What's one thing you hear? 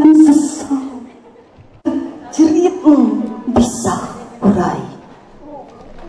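A woman recites loudly and dramatically through a microphone and loudspeakers.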